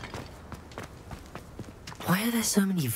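Footsteps run quickly across stone paving.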